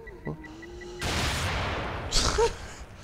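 A gunshot booms, followed by a rushing hiss.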